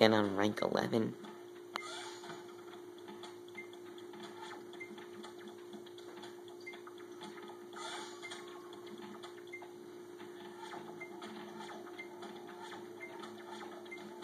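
Soft electronic video game music plays through a television speaker.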